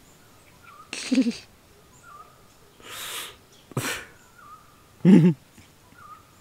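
A man chuckles softly close by.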